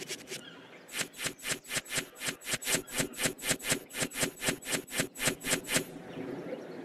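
Game cards flip over with a rapid run of quick clicks.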